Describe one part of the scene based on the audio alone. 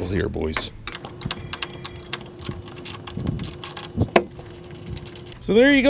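Metal parts clink and rattle.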